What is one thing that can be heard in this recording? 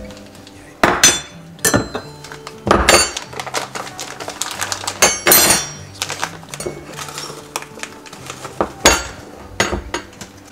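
Something knocks and clinks against a metal bowl now and then.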